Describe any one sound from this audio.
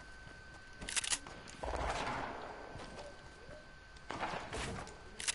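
Building panels snap into place with quick clacks.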